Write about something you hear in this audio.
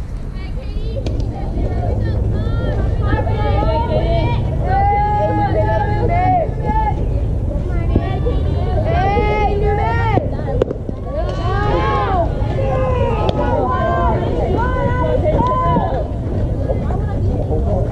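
Young girls chant and cheer loudly outdoors.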